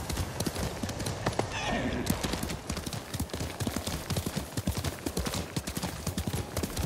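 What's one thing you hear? Horse hooves gallop quickly over grass.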